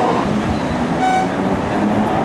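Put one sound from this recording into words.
A tram bell rings once.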